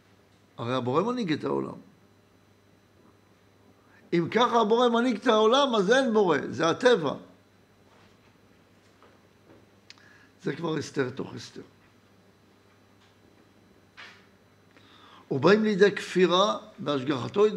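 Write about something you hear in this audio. An elderly man speaks with animation into a close microphone, in bursts with pauses.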